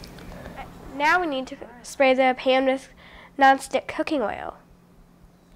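A young girl speaks nearby.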